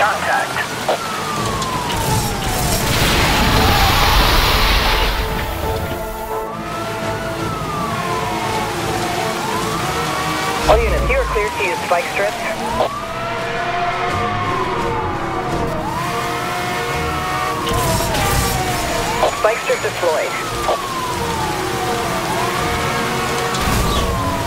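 A car engine roars at high speed.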